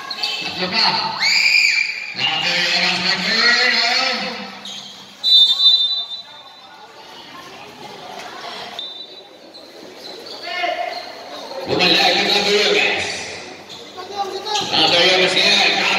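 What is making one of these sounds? Young men shout loudly across an echoing court.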